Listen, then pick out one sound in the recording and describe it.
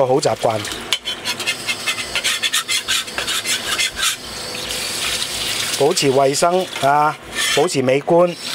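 A metal spatula scrapes across a wok.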